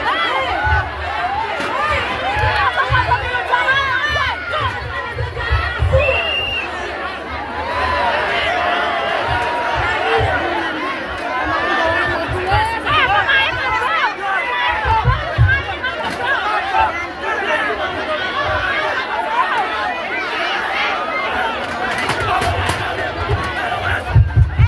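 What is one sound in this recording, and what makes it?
A large crowd of men and women shouts and chatters loudly outdoors.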